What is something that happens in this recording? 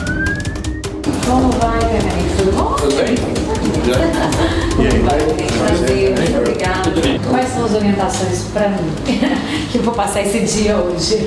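A woman speaks and laughs nearby.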